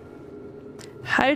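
A young woman speaks briefly into a close microphone.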